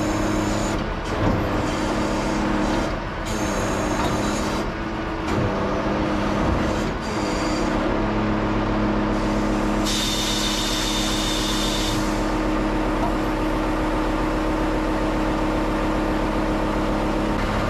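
A truck engine runs with a steady low drone.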